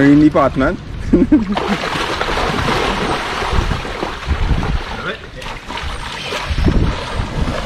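Water splashes loudly.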